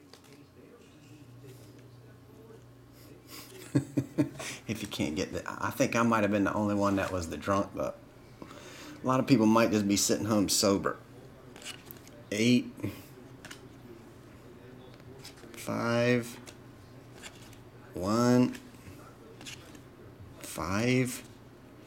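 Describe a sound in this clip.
Trading cards slide and flick against each other as they are shuffled.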